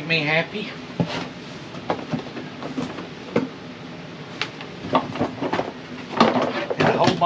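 Items rustle and clatter in a cardboard box.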